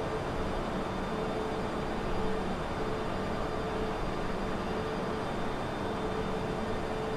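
Jet engines roar steadily with a constant hum.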